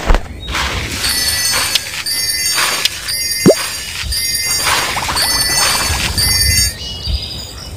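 Bright game chimes ring out quickly, one after another.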